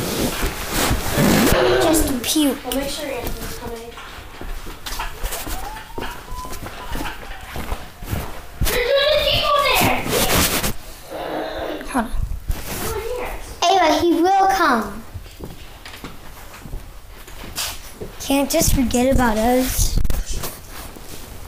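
A young girl talks and exclaims with animation close to the microphone.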